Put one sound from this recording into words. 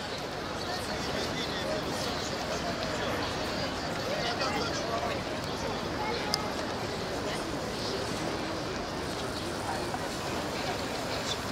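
Footsteps scuff on cobblestones.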